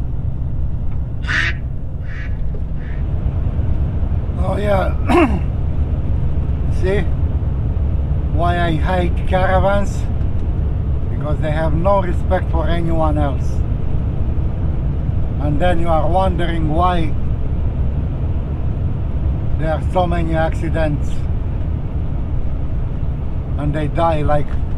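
A car drives along with a steady low road rumble.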